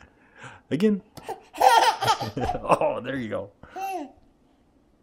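A toddler girl squeals and laughs loudly close by.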